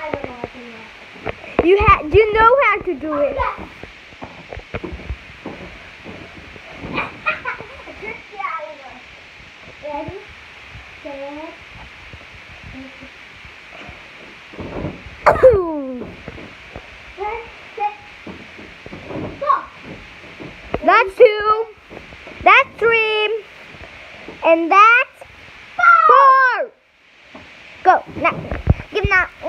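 A young girl shouts and squeals excitedly close by.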